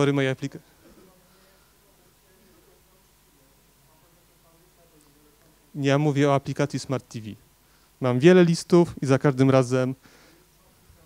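A man speaks into a microphone through loudspeakers, in bursts with pauses.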